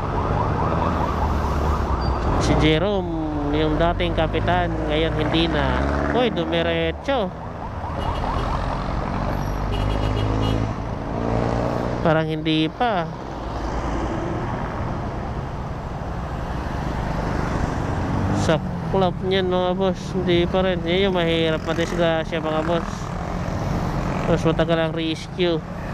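Motorcycle and car engines hum steadily in nearby traffic.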